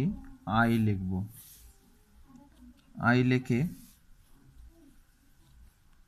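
A pencil scratches softly across paper.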